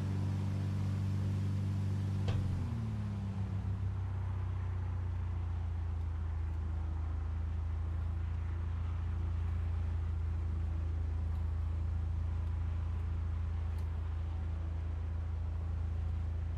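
A propeller aircraft engine drones steadily, dropping lower in pitch early on.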